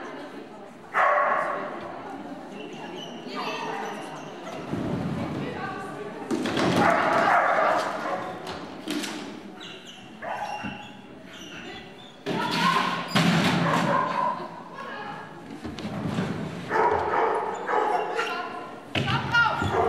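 A woman calls commands to a dog in a large echoing hall.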